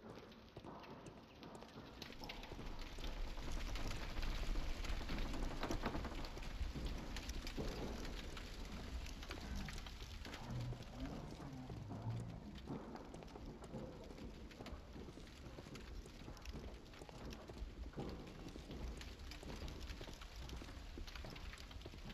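Footsteps walk steadily over cobblestones.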